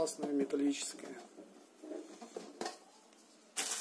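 A cardboard box lid slides off with a soft scrape.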